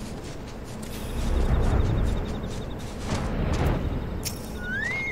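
A flying mount's wings whoosh with a low rumble that swells and fades.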